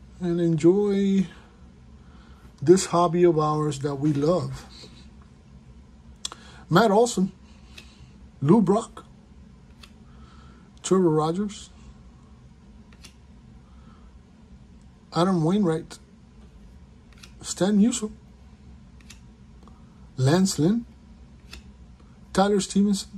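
Trading cards rustle and slide softly as they are flipped through by hand.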